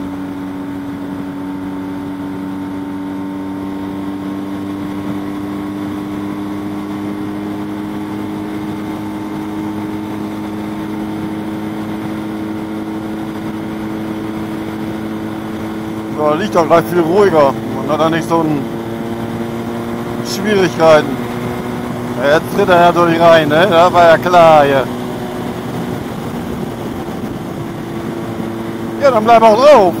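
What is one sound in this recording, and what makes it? Wind rushes past a motorcycle rider.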